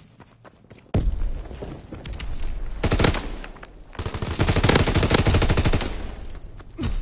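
Rapid gunfire rattles close by in loud bursts.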